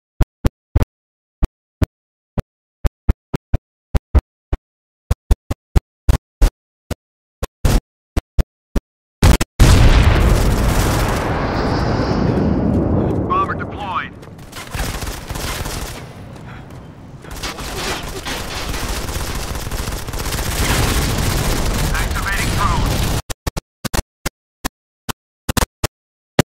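Gunshots fire in short, sharp bursts.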